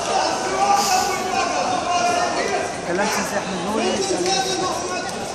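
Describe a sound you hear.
A crowd of adults chatter in a large echoing hall.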